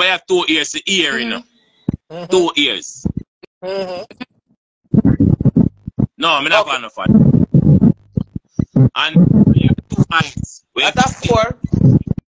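A woman speaks emotionally over an online call, her voice breaking.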